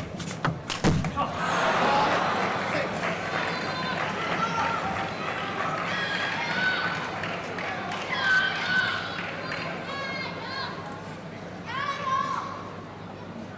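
A crowd cheers and applauds loudly in a large hall.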